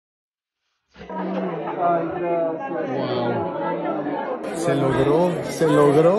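A crowd of people chatter in an indoor room.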